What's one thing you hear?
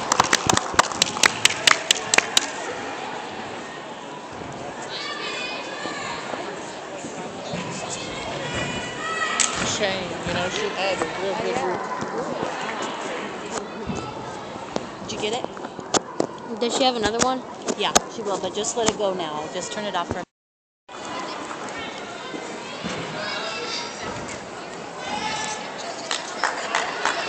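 A crowd of people murmurs and talks in a large hall.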